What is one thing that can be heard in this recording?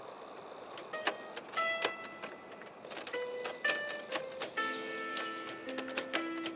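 A small toy piano plays short, bright notes.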